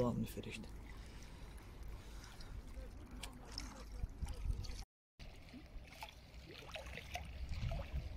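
Wind rumbles softly across open water.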